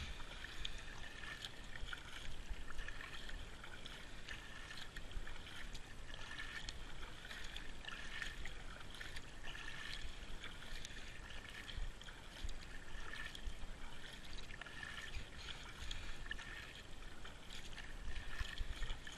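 Wind rumbles softly across the water.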